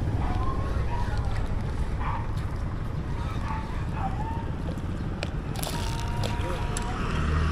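A fishing reel clicks and whirs as its line is wound in.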